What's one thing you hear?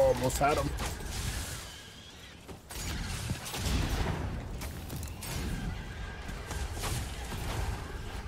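Gunfire crackles in a video game.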